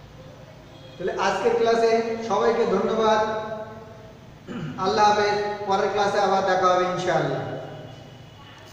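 A man's voice chants in long held phrases over a loudspeaker.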